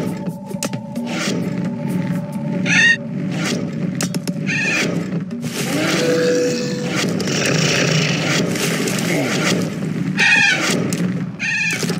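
Arrows whoosh and thud as wooden ships fight in a battle.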